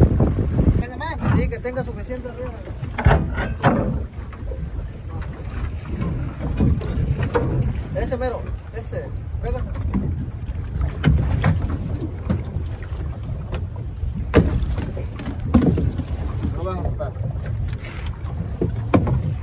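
A man talks in a raised voice nearby, over the wind.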